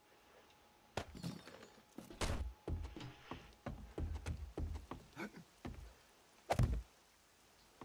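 Blocks thud as they are placed in a game.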